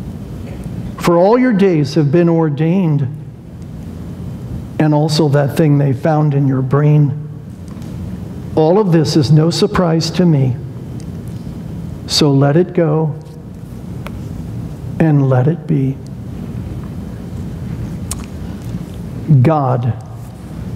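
A middle-aged man speaks slowly and deliberately through a microphone, with long pauses, in a room with some echo.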